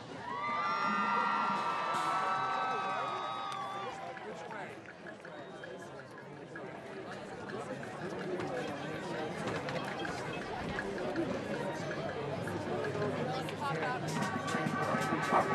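A crowd murmurs and cheers in the stands.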